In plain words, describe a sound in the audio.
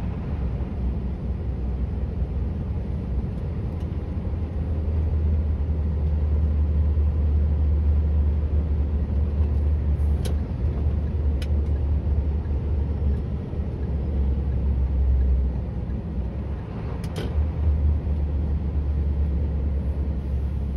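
Tyres roll on a paved road with a steady hum.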